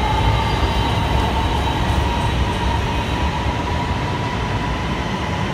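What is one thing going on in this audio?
An electric metro train rushes past a platform with a rumble and a high whine.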